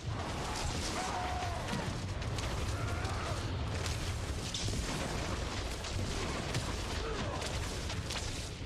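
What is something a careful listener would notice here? Weapons clash and magic bursts in a game fight.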